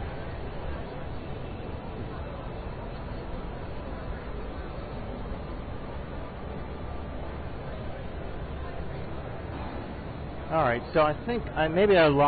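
A crowd murmurs in a large, echoing hall.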